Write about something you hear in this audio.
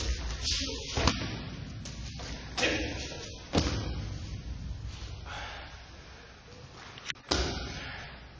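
A body thuds onto a mat.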